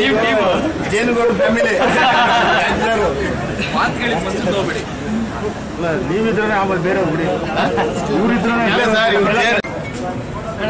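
Young men talk and laugh cheerfully close by.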